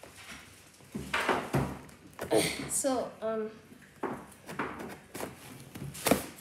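Scissors snip and crunch through cardboard.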